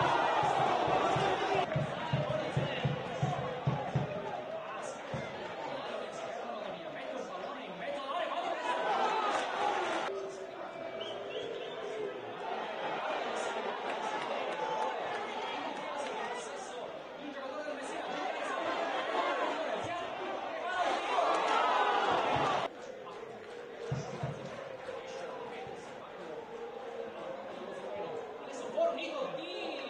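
A large crowd cheers and chants in an open-air stadium.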